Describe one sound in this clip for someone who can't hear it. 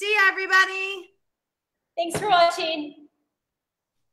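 A young woman speaks cheerfully over an online call.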